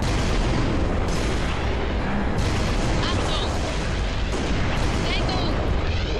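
A rifle fires sharp, cracking shots.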